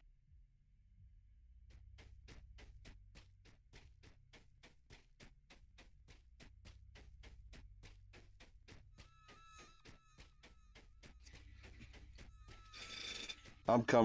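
Footsteps tap quickly and steadily on stone.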